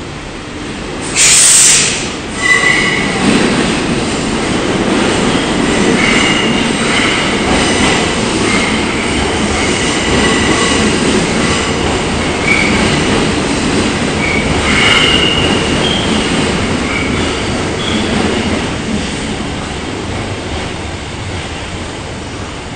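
An electric subway train pulls into an echoing underground station and brakes.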